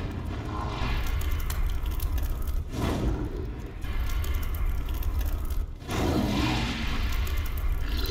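Flames crackle in a fire.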